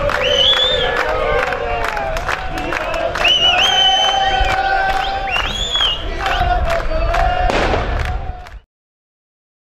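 Drums beat among a crowd.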